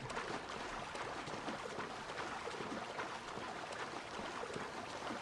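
Water splashes steadily as a swimmer strokes through it.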